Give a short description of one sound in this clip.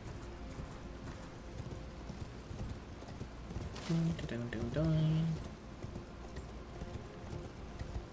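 Footsteps patter on stone steps.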